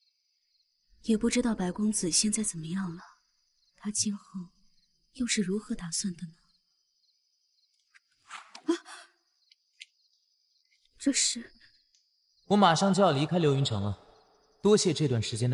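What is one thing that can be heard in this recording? A young woman speaks calmly and softly.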